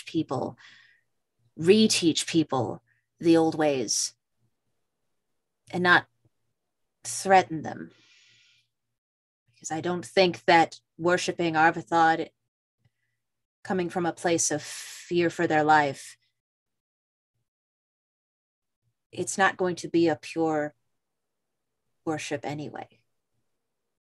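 A man speaks calmly into a close microphone, heard over an online call.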